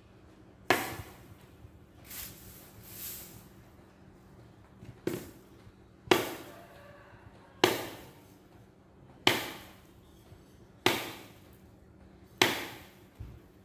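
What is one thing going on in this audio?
A man knocks a broom sharply against the ground, again and again.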